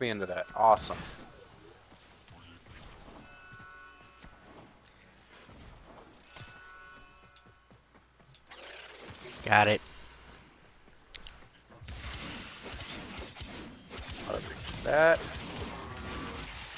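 Game weapons fire with sharp electronic blasts.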